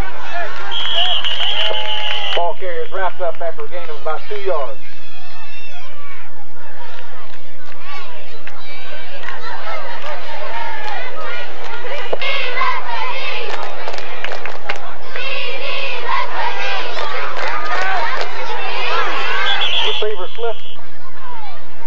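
A referee's whistle blows.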